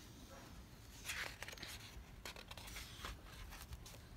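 A paper page is turned with a soft rustle.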